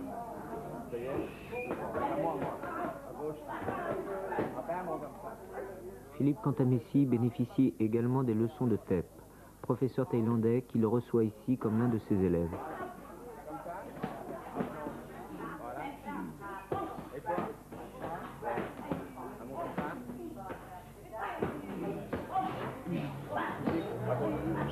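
Boxing gloves thud against each other.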